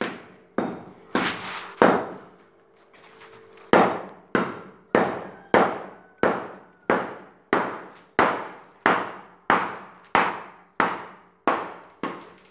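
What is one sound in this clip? A tool chops repeatedly into wet mud and debris.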